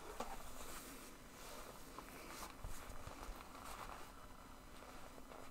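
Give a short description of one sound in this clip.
Leather straps and clothing rustle and creak close by.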